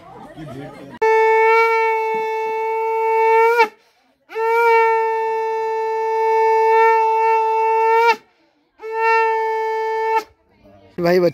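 A conch shell is blown in long, loud, steady blasts.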